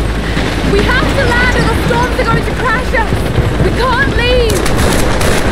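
A young woman speaks tensely up close.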